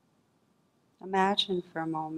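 A woman speaks calmly and softly into a microphone.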